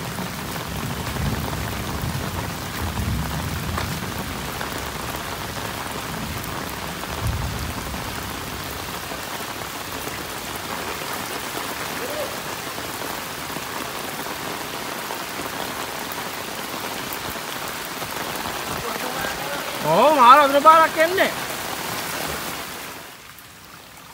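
Muddy runoff water rushes over a paved road.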